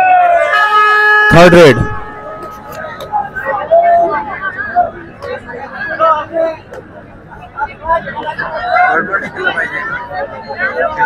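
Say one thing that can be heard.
A large crowd cheers and chatters loudly nearby.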